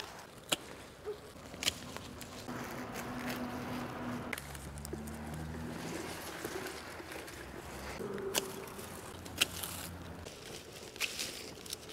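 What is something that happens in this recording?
Garden shears snip through flower stems.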